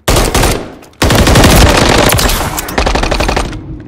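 An assault rifle fires a rapid burst.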